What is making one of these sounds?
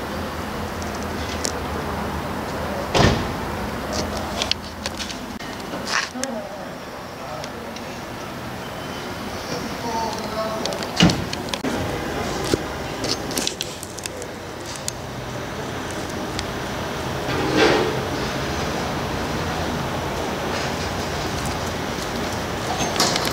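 Steady city street noise hums outdoors.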